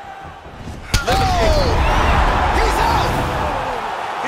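A crowd roars loudly after a knockout.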